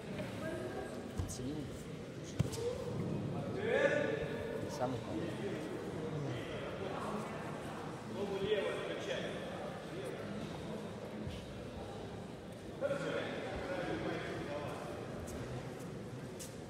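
People talk in the background of a large echoing hall.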